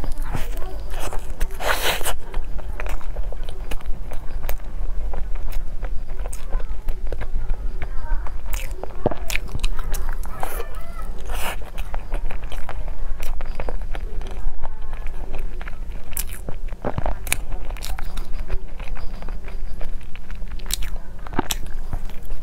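A young woman bites into crispy bread with a crunch.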